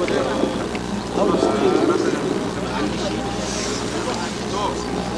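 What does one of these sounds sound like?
An elderly man speaks with animation into a microphone, heard through a loudspeaker outdoors.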